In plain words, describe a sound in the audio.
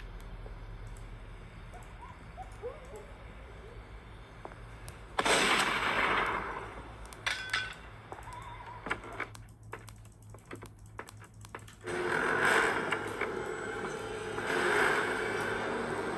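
Fingers tap lightly on a touchscreen.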